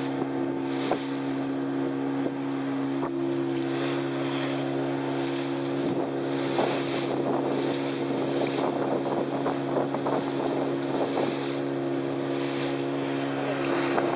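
A boat's outboard motor drones steadily.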